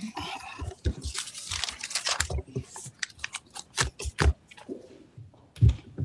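Papers rustle at a lectern.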